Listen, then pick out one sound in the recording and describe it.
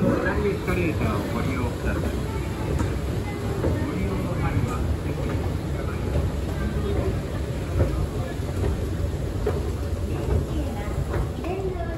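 An escalator hums with a low, steady drone.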